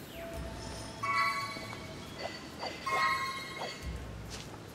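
A bright magical chime rings and shimmers.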